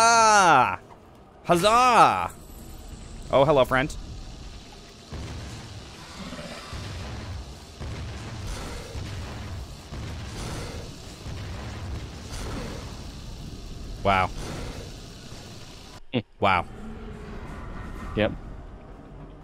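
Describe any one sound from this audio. Energy blasts whoosh and crackle in short bursts.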